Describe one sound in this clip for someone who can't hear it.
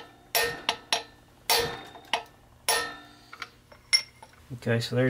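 Metal tools clink and tap against a metal part.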